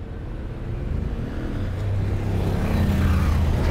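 City traffic rumbles, growing louder.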